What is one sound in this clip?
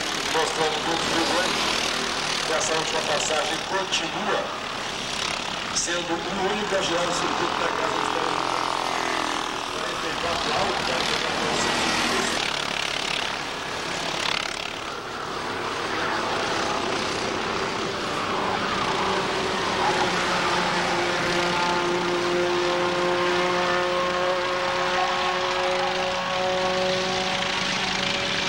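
Kart engines buzz and whine loudly as karts race past.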